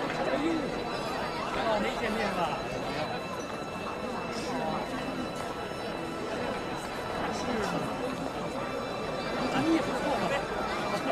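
A crowd of men and women chatters nearby.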